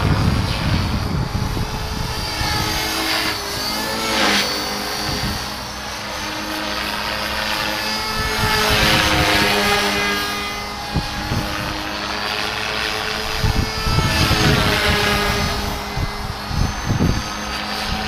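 A model helicopter's motor whines high overhead, rising and falling in pitch.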